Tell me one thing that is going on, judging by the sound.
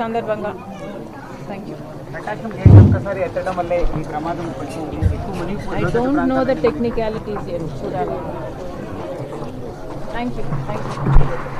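A woman speaks calmly into microphones close by.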